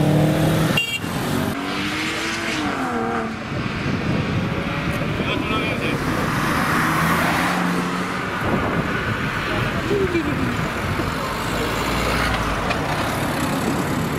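A second car engine rumbles and revs as the car rolls slowly past.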